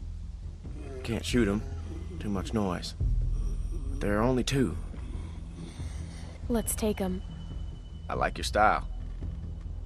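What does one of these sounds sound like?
A man speaks quietly and tensely.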